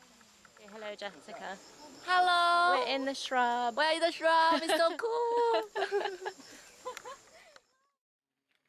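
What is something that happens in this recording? A young woman laughs and talks excitedly close by.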